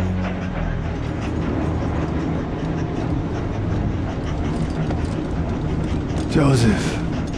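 A man speaks slowly and gravely, close by.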